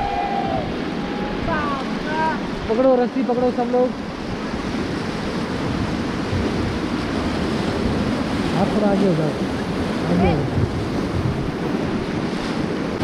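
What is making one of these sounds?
White water rushes and roars loudly around a raft.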